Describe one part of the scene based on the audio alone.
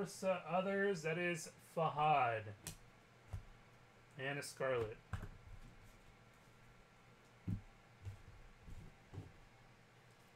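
Trading cards tap and rustle as hands handle them.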